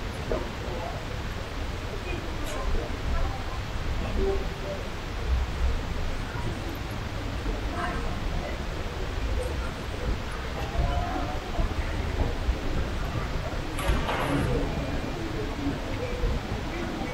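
A crowd of travellers murmurs in a large echoing hall.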